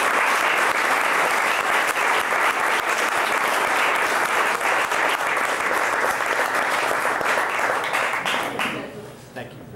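A crowd applauds loudly and steadily, then stops.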